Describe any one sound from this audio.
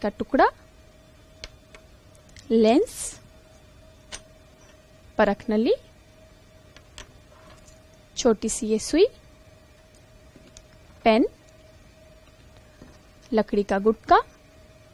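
A young woman speaks calmly into a close microphone, in short phrases with pauses.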